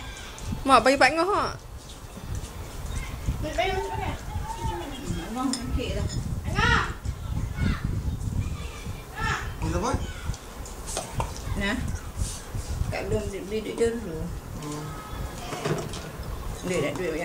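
A boy talks and laughs close by.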